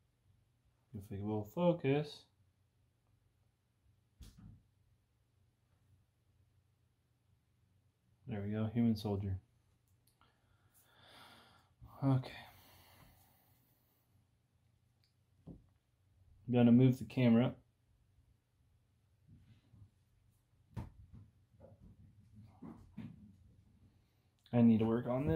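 A young man speaks calmly and close by, in short bursts.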